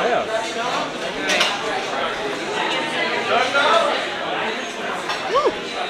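Diners chatter in the background.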